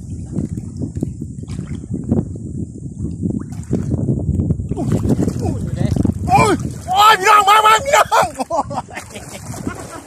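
Water splashes and sloshes nearby.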